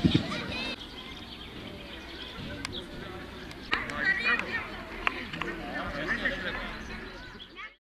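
A crowd of children and adults chatters and calls out outdoors at a distance.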